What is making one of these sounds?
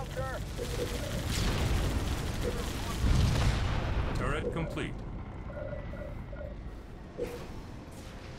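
Short electronic interface chirps and beeps sound.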